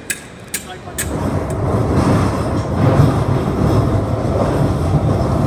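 An underground train rumbles and rattles loudly at speed.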